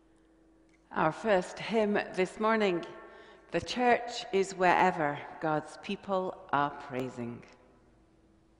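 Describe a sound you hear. A middle-aged woman speaks warmly into a microphone.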